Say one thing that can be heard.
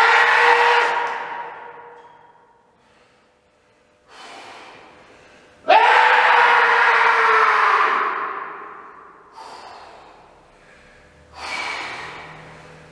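Metal weight plates are struck and ring out, each ring slowly fading.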